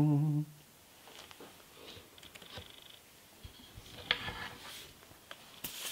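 A man speaks softly close by.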